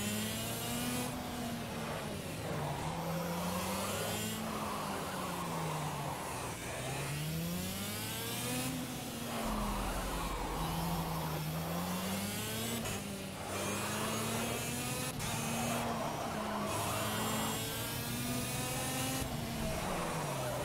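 A small kart engine buzzes, rising and falling in pitch as it speeds up and slows down.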